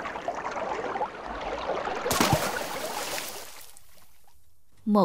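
Waves wash and churn on open water.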